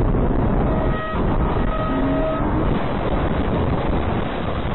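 A truck tips over and crashes onto its side with a heavy thud.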